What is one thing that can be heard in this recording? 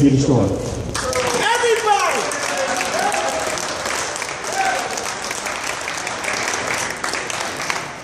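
Men clap their hands.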